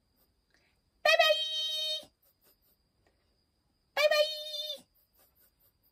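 A woman sings short, high, bright notes close by.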